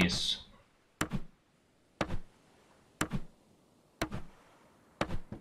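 Wooden planks knock into place.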